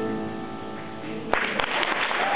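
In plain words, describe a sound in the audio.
A piano plays a chord and rings out.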